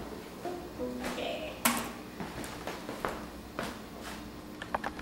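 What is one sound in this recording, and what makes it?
A young woman talks softly into a microphone, close by.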